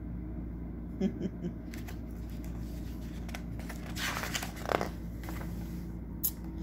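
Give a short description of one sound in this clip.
Fingers brush and tap against paper.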